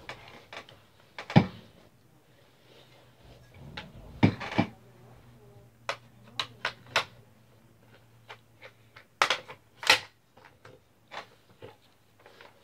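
Metal parts of a rifle click and clack as they are handled.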